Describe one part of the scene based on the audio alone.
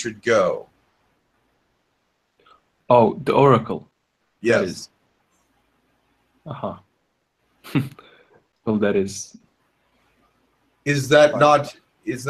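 A man speaks in short, halting phrases over an online call.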